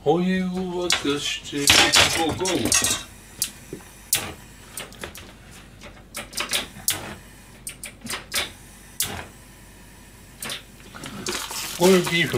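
Metal pans and utensils clink and knock.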